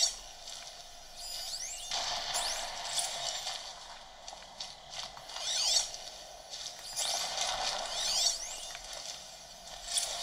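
Video game sound effects and music play from a small handheld speaker.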